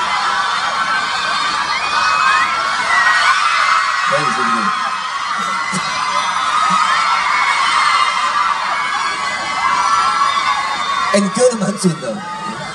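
A crowd of young fans screams and cheers loudly.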